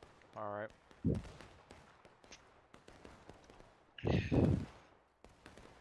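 A rifle fires with a loud bang.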